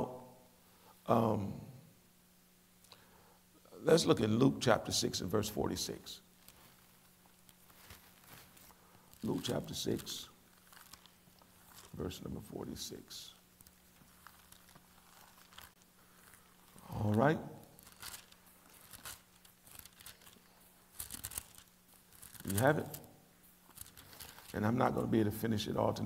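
A middle-aged man speaks slowly and calmly into a microphone, with pauses.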